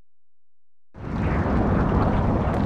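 Molten lava roars and bubbles with a deep rumble.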